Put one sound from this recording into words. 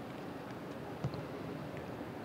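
A football thumps into gloved hands.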